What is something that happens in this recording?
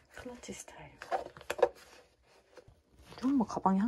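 A leather bag's clasp clicks open.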